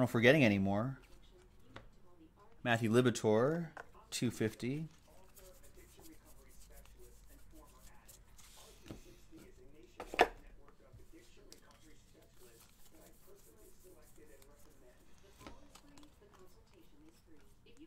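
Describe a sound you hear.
Trading cards shuffle and flick in hands.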